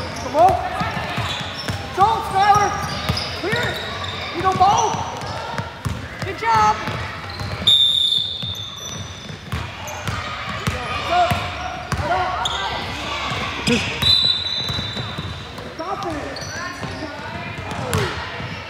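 Young girls shout and call out to one another.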